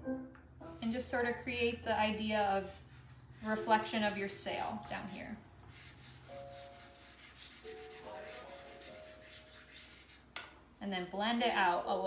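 Pastel chalk scratches softly on paper.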